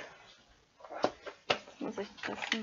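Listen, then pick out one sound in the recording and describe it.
A metal tin lid clicks and clatters open.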